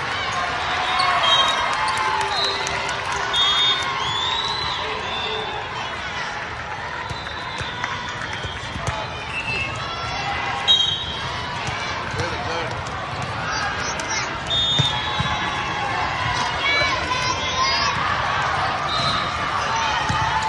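A volleyball is struck with a hard slap.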